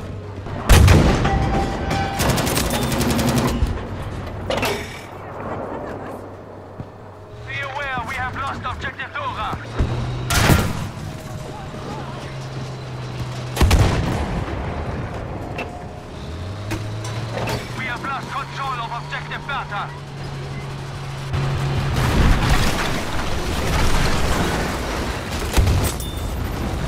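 Tank cannons fire with loud booms.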